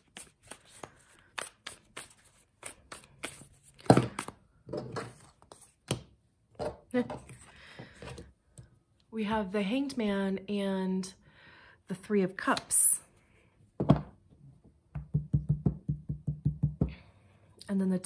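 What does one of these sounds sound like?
Cards shuffle with quick, crisp flicking.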